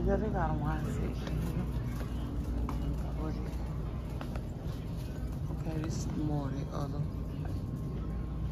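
A shopping cart rattles and rumbles as it rolls along a hard floor.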